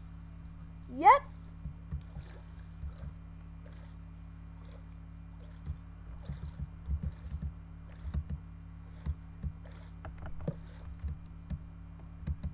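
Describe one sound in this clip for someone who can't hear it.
Water splashes and bubbles as a swimmer moves underwater.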